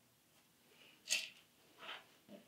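A small plastic box of pins rattles briefly.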